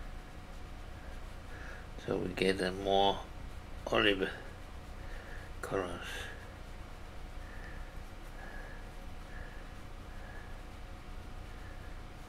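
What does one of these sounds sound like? A paintbrush dabs softly in paint on a palette.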